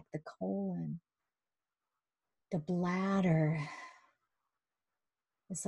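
A middle-aged woman speaks calmly through an online call.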